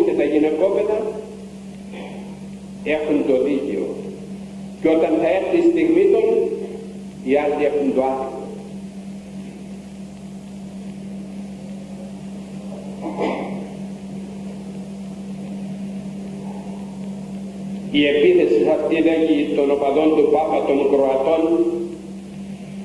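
An elderly man speaks slowly into a microphone, with long pauses, heard over a loudspeaker.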